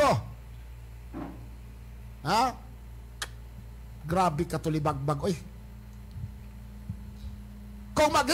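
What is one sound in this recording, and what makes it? A man speaks loudly and with animation into a close microphone, in short bursts with pauses.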